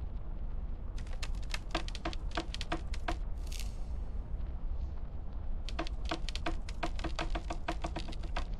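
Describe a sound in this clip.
Wooden pieces click and clack as they turn.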